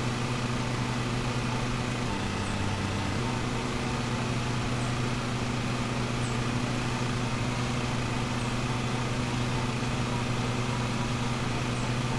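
A riding lawn mower engine hums steadily.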